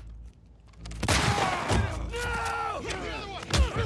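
A man shouts in protest.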